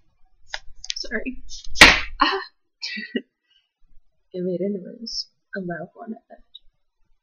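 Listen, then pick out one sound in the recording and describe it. A young woman speaks casually, close to a microphone.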